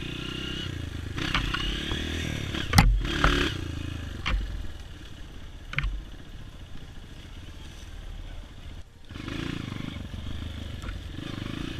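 Branches and leaves brush against the motorcycle.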